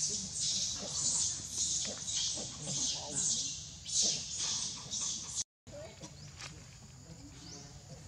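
A monkey chews food softly close by.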